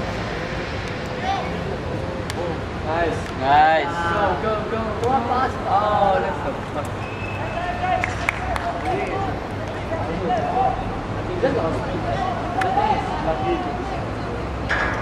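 Young men shout to each other across an open field in the distance.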